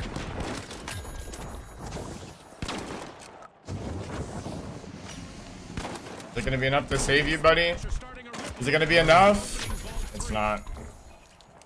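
Explosions boom loudly in a game.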